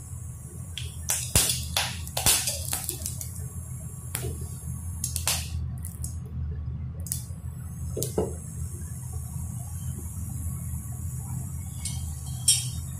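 A cooktop hums steadily.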